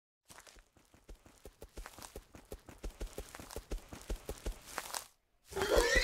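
Footsteps swish softly through tall grass.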